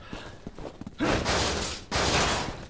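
A metal door bursts open with a loud crash.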